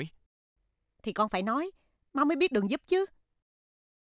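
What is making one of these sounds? A woman speaks in a worried voice, close by.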